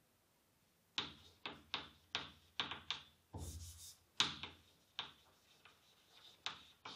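Chalk taps and scratches sharply on a board.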